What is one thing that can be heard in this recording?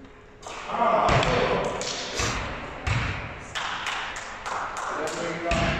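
A basketball bounces on a wooden floor in a large echoing hall.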